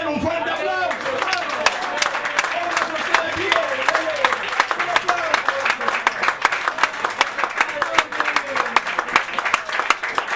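People clap their hands rhythmically.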